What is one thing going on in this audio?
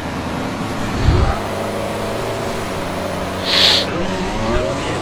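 Pneumatic wheel guns whir briefly during a pit stop.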